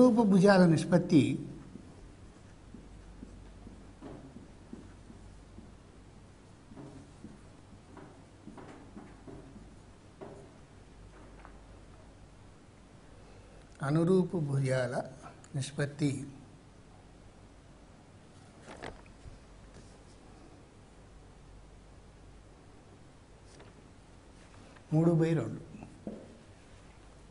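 An elderly man speaks calmly in bursts, as if lecturing.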